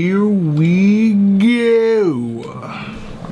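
A young man talks animatedly and close by.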